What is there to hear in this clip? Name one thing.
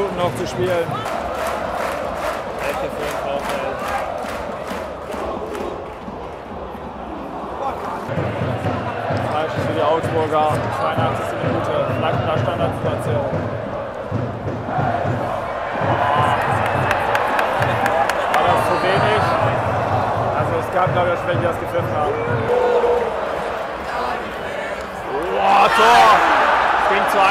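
A large stadium crowd sings and chants loudly outdoors.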